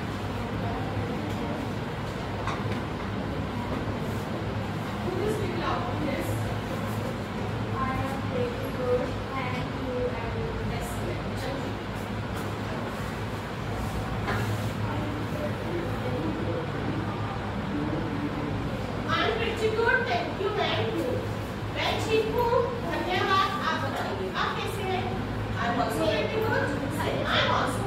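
A woman speaks, heard from across a room.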